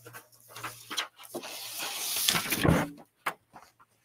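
Paper rustles and crinkles nearby.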